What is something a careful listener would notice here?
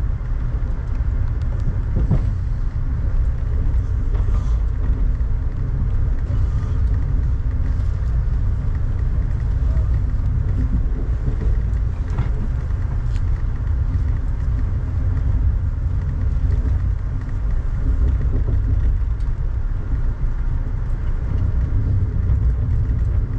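Raindrops tap and patter on a car window.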